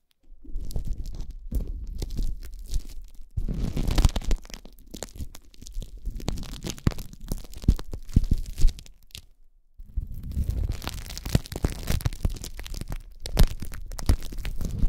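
Plastic wrap crinkles and crackles close up as fingers squeeze it.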